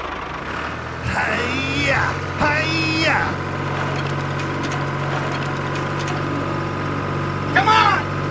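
A small toy tractor's motor hums steadily.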